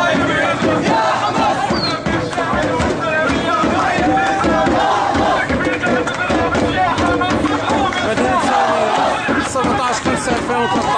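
A crowd of young people sings and shouts loudly together.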